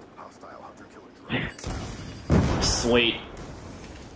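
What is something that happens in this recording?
A rocket explodes with a deep boom.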